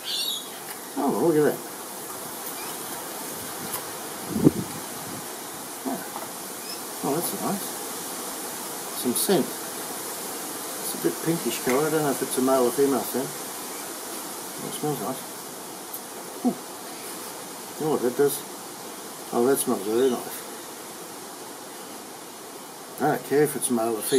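A middle-aged man talks calmly and close by, with pauses.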